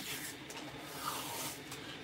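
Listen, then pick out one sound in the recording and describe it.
Sticky tape peels off a roll with a soft rasp.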